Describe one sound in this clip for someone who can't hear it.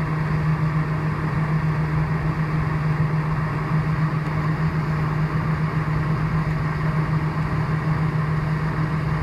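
A jet engine hums loudly and steadily from inside an aircraft cabin.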